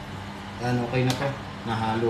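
A knife cuts vegetables on a board.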